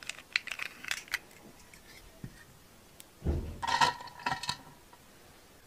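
Plastic toys click and tap together in someone's hands.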